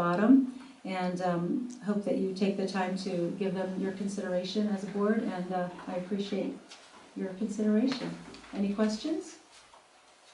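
A woman speaks calmly into a microphone in a room with a slight echo.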